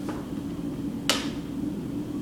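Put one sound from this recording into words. A plastic ruler clicks as it is set down on paper.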